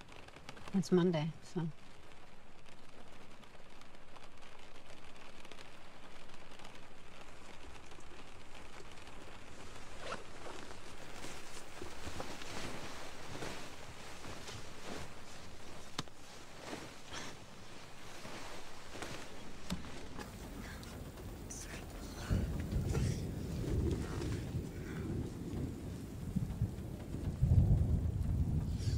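Rain patters on a car's windows.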